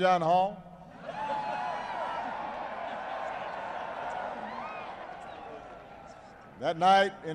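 A large crowd laughs and cheers.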